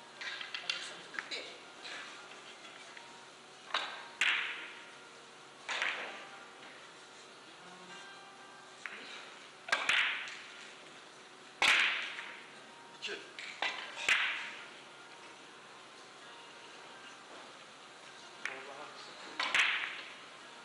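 Billiard balls click sharply against each other in an echoing hall.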